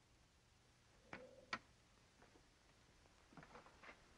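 A door latch clicks and a door swings open.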